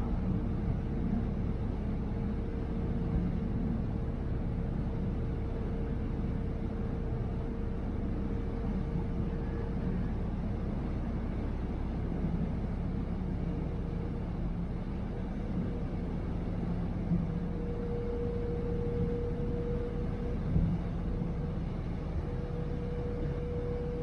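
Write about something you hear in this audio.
Water churns and rushes in the wake of a ferry.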